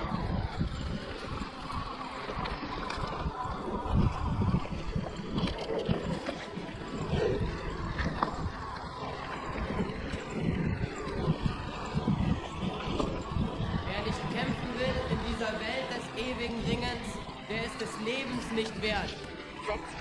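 A hardtail mountain bike rattles over a bumpy dirt trail.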